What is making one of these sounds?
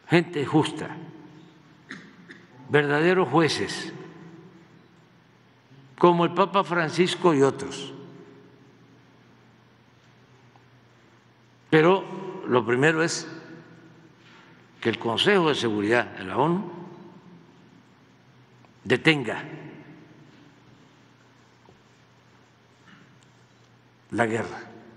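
An elderly man speaks slowly and calmly into a microphone, in short phrases with long pauses.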